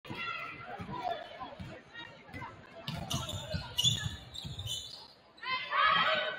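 A crowd in a large echoing gym cheers and chatters.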